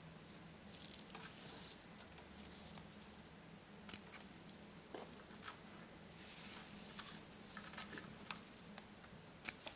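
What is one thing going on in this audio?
Scissors snip through ribbon with faint clicks.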